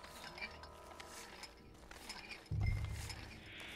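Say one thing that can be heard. Footsteps crunch on dirt and dry grass.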